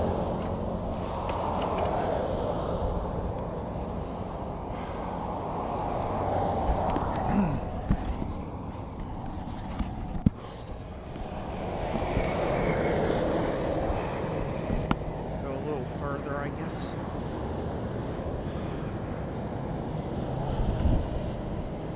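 Wind rushes and buffets steadily outdoors.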